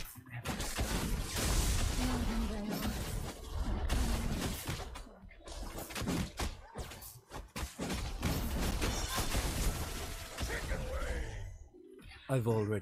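Rapid game combat sounds of blasts and strikes crackle loudly.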